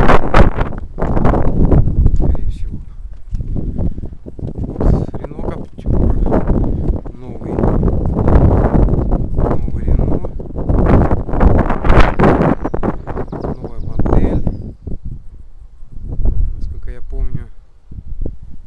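Wind gusts and buffets outdoors.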